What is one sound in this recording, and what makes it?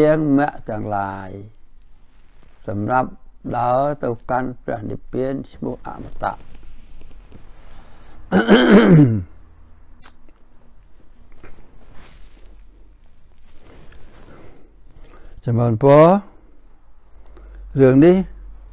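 An elderly man speaks slowly and calmly, close to a microphone, with long pauses.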